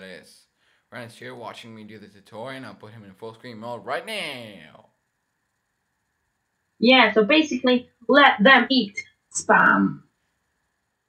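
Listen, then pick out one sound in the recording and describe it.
A teenage boy talks with animation over an online call.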